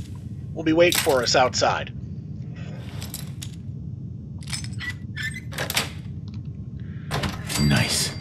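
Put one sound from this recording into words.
A metal lock clicks and scrapes as it is picked.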